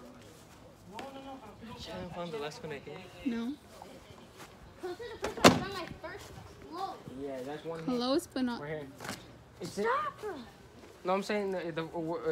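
Children shout and play outdoors.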